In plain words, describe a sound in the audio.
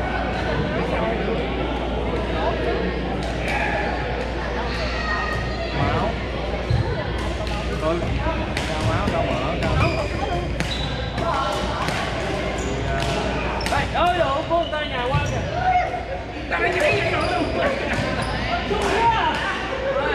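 Shoes squeak on a wooden floor.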